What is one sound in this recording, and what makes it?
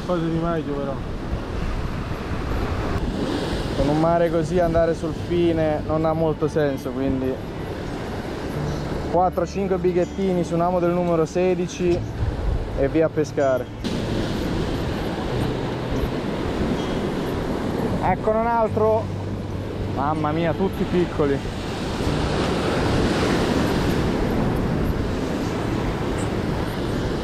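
Waves crash and wash against rocks close by.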